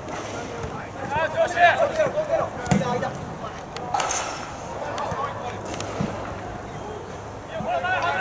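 People nearby talk and cheer with excitement.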